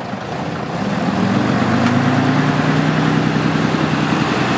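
A lorry engine hums steadily close by and rises slightly in pitch.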